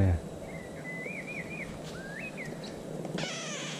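A small bird chirps briefly.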